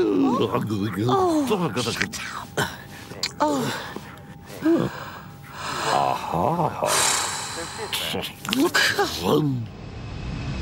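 A man mumbles and grunts with animation, close by.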